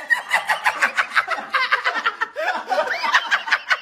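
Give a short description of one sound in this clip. A young man laughs loudly and shrieks close by.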